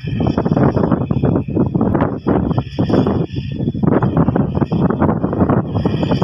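A tractor engine rumbles steadily a short way off.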